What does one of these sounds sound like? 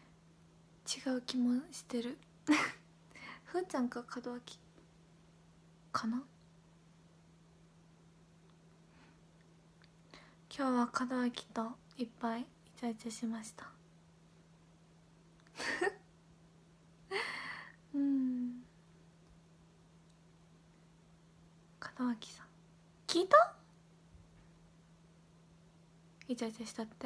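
A young woman talks softly and close by, in short bursts with pauses.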